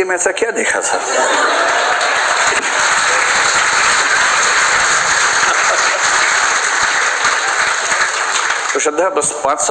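A large audience claps and cheers loudly.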